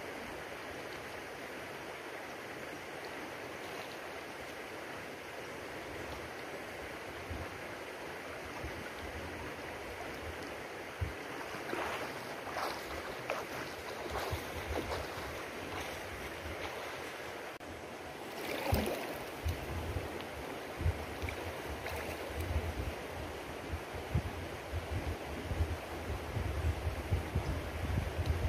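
A shallow river flows and babbles steadily.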